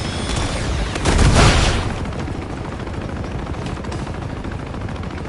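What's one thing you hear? Bullets strike and ricochet off metal crates.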